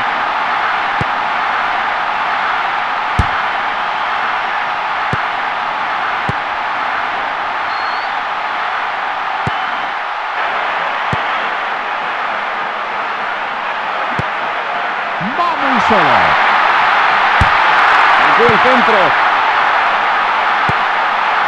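A football is kicked with sharp thuds again and again.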